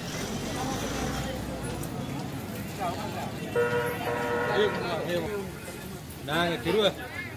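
A crowd of men and women chatters and murmurs nearby outdoors.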